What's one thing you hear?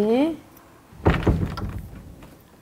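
A heavy door thuds shut.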